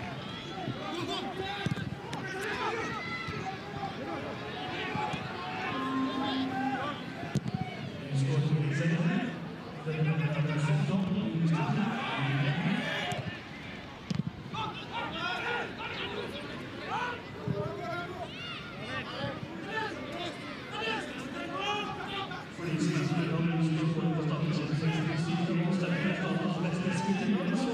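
A crowd murmurs and cheers in the distance.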